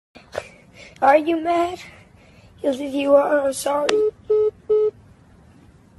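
A young man calls out loudly and close by over a phone call.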